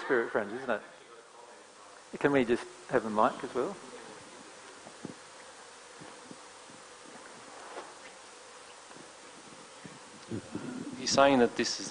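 A man speaks with pauses, heard through a microphone.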